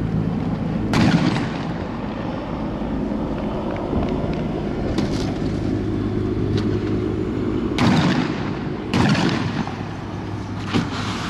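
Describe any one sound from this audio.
A car engine hums nearby.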